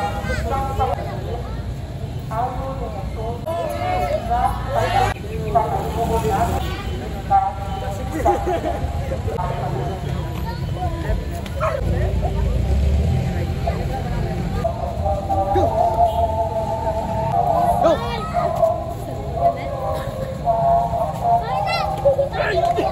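Several young men talk and call out with animation outdoors.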